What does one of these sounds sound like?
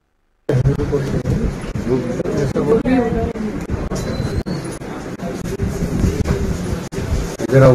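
Several men talk over one another loudly and with agitation, close by.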